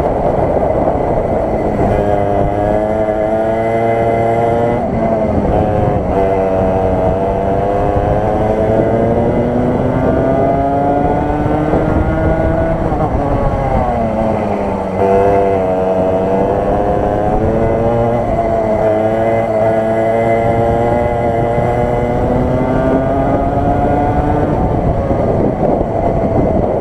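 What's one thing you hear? A kart engine roars close by, its pitch rising and falling with the speed.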